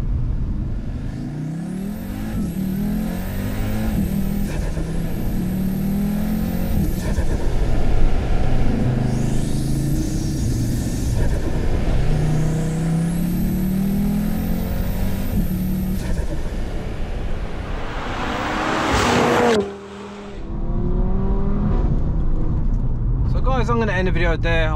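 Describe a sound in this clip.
A car engine revs up and down as the car accelerates hard.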